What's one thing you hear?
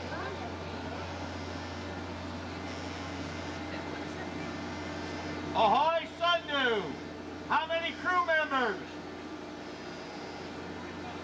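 A ship's engine idles with a low, steady hum.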